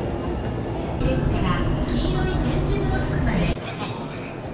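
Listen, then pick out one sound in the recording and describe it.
A young woman speaks excitedly, close by.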